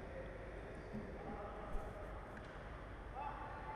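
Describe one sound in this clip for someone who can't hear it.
Sneakers squeak on an indoor court, echoing in a large hall.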